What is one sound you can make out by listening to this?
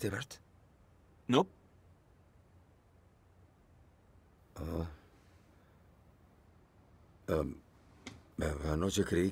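A middle-aged man speaks close by in a low, strained voice, in short bursts with pauses.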